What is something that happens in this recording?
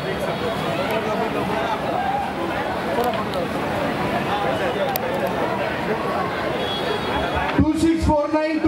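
A crowd of people chatters loudly.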